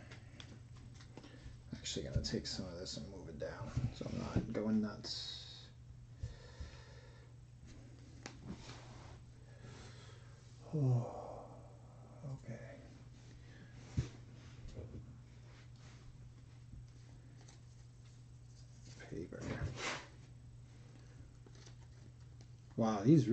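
Trading cards rustle and slap together as hands sort through a stack.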